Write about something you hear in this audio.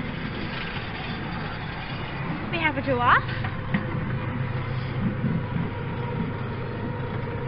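A small train rumbles and clatters steadily along its track outdoors.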